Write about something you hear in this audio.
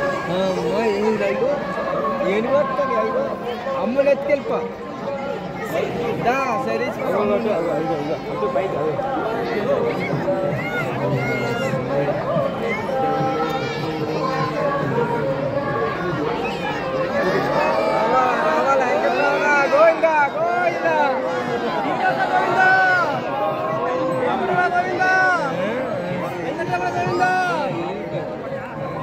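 A large crowd chatters and calls out nearby, outdoors.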